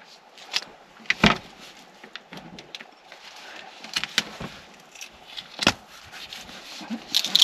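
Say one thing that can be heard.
Hands knock and fumble against a thin wall, with sharp clicks and thuds close by.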